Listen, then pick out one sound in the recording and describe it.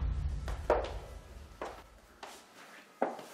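Footsteps thud across the floor.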